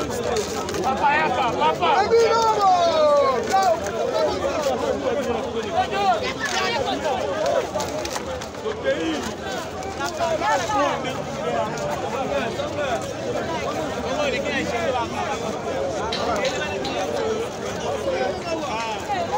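A crowd of men and women talk and shout all around, close by, outdoors.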